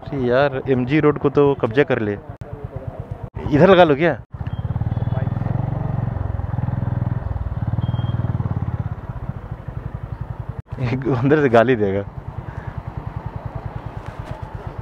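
A motorcycle engine runs with a steady, rapid thumping.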